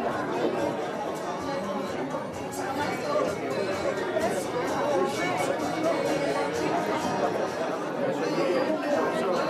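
A crowd of men and women chatter all around in a busy, echoing hall.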